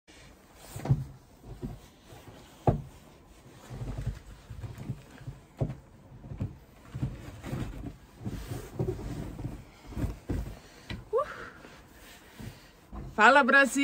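Clothing rustles and bumps close by.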